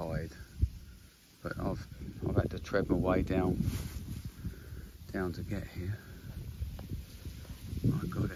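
Wind rustles through tall reeds and grass.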